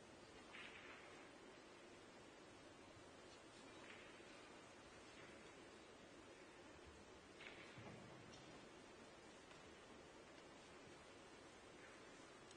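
Billiard balls knock together with a sharp click in a quiet hall.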